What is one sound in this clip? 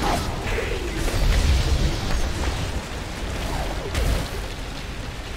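Fiery explosions crackle and boom in a game.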